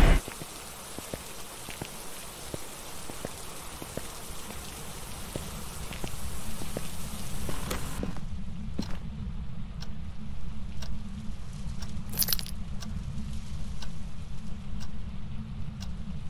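Footsteps tread at a walking pace.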